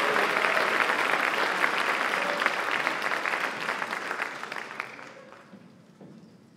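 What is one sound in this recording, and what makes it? A large audience applauds in an echoing hall, then the clapping fades away.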